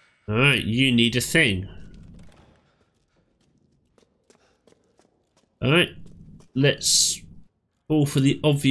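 A man talks excitedly into a close microphone.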